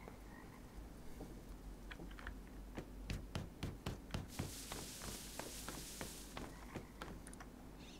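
Footsteps crunch on dry straw.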